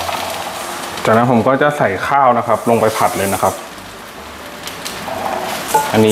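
Dry rice pours and rattles into a pan.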